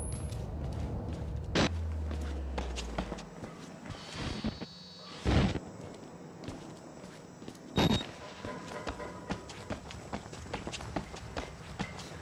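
Footsteps tread steadily along a hard floor.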